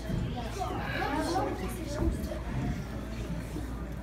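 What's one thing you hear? Children chatter and talk.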